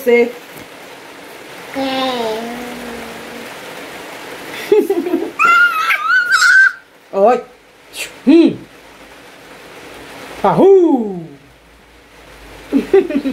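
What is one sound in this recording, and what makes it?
A woman speaks playfully and closely to a baby.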